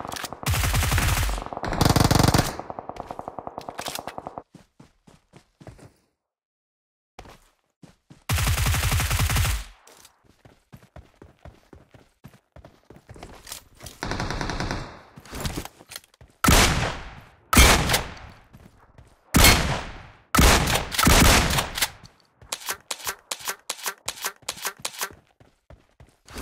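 Footsteps patter quickly over rocky ground.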